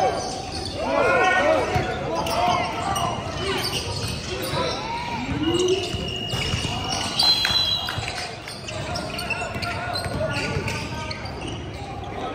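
Young men shout and call out across a large echoing gym.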